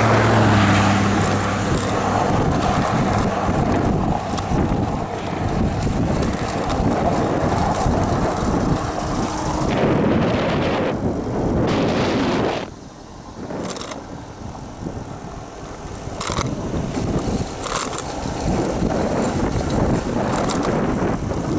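Wind rushes over the microphone of a bicycle that is moving fast.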